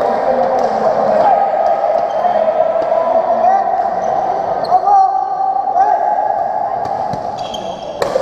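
A crowd of spectators chatters and calls out in an echoing hall.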